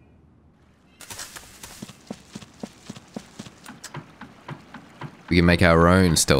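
Footsteps clatter on a wooden plank bridge.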